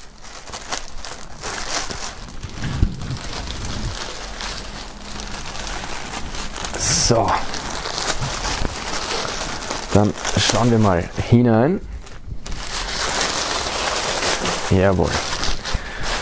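Plastic wrapping crinkles and rustles as hands handle it.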